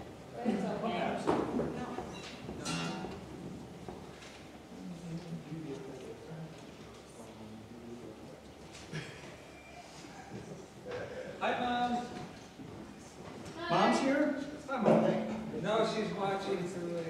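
An acoustic guitar is strummed and plucked.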